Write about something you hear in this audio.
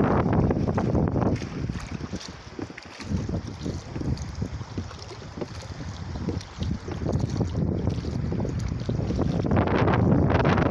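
Oars splash and dip in water.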